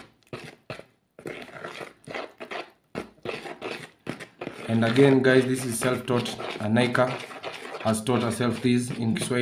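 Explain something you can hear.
Wet batter squelches as a hand mixes it in a bowl.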